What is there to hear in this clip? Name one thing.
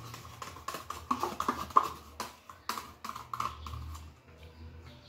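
A spoon scrapes and clinks against a plastic cup.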